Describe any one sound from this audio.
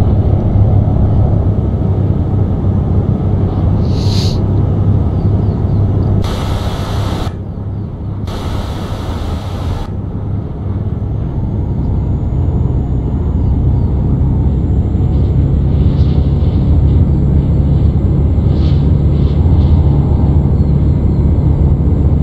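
A truck engine rumbles steadily as the truck drives along a road.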